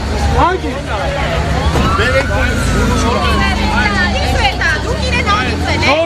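A crowd of men and women talk and shout over one another close by.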